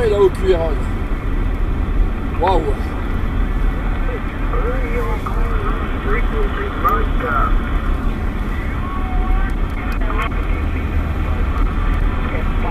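A car engine hums steadily with road rumble while driving.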